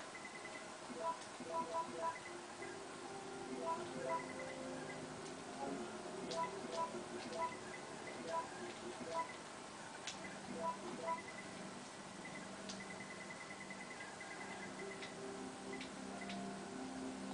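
Short electronic beeps from a video game menu sound as a cursor moves through a list.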